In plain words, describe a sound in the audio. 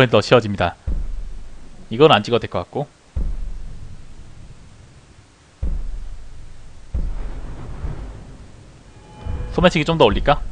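A deep, low boom swells up and slowly fades, several times.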